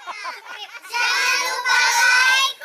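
A group of teenagers calls out loudly together in chorus.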